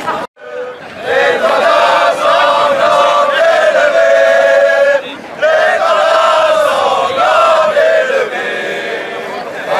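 A crowd of men sings loudly together outdoors.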